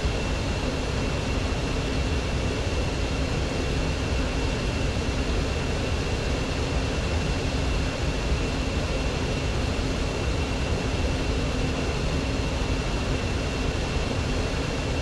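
A jet engine whines and rumbles steadily from inside the cockpit.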